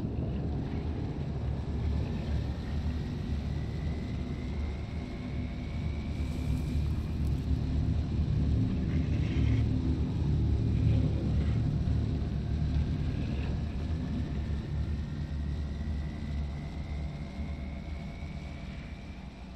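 A vehicle's engine rumbles low and steady while driving.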